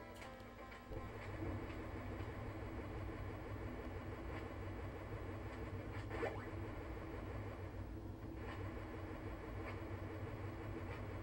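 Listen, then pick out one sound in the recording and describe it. Upbeat chiptune video game music plays steadily.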